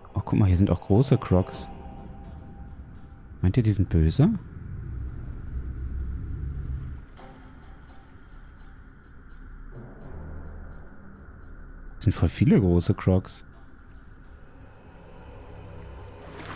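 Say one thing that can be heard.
A crocodile swims underwater with a low, muffled rush of water.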